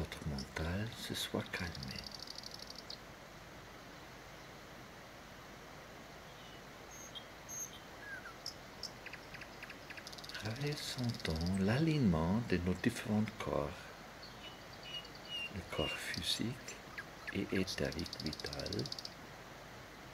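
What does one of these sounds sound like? Shallow water trickles and gurgles over stones.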